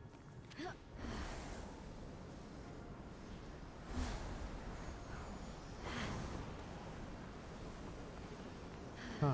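Air whooshes as a winged figure glides through the air.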